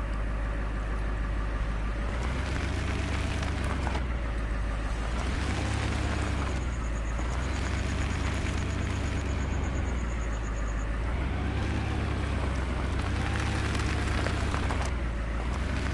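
A truck engine rumbles, revving up and down.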